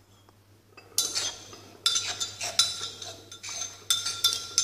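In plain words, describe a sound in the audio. A pot clinks and scrapes against a plastic bowl.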